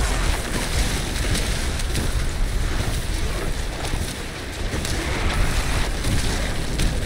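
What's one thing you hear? Icy spell blasts crackle and burst again and again.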